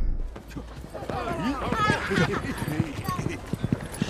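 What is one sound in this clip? Men and women call out and chatter outdoors.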